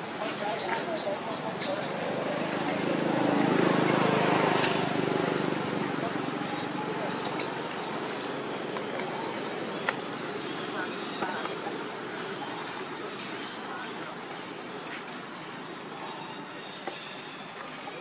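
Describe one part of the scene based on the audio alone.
A baby monkey squeals nearby.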